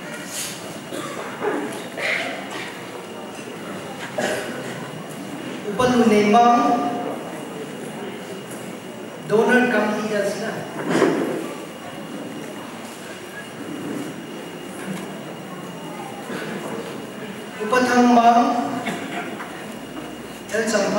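A man reads out names through a microphone and loudspeakers in an echoing hall.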